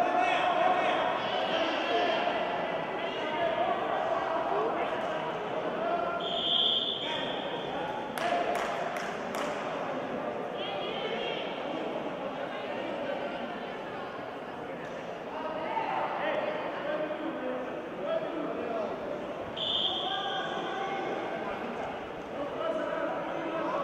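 Men and women call out loudly in an echoing hall.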